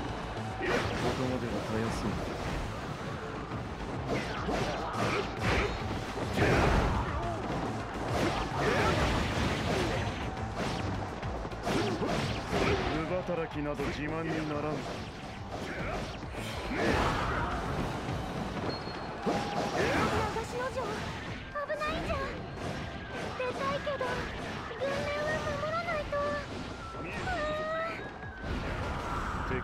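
Blades swish and clang in quick bursts.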